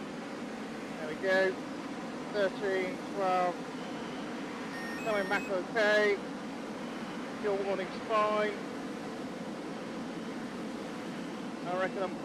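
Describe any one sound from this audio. A man speaks calmly over a radio, close and muffled.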